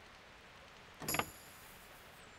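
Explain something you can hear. A metal lock clicks open.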